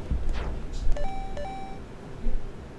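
A video game menu gives short electronic beeps.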